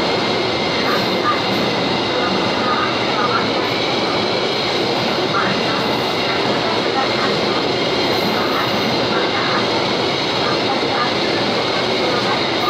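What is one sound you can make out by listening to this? A freight train rumbles and clatters steadily past up close.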